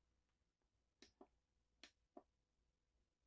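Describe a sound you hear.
A finger taps buttons with soft clicks.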